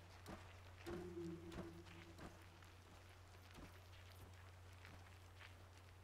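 Footsteps run quickly over dirt.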